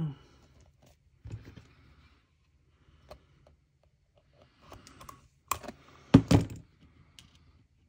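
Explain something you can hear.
Paper rustles and slides as hands handle it.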